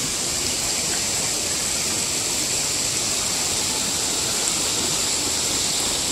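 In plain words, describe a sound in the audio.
A stream rushes and gurgles over rocks close by.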